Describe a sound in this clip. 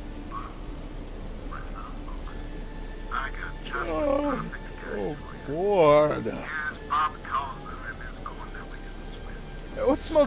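Rain falls steadily on a street.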